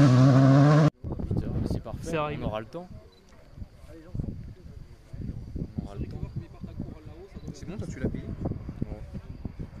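Men and women chat at a distance outdoors.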